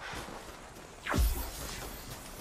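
A deep whoosh sweeps down sharply as a figure leaps.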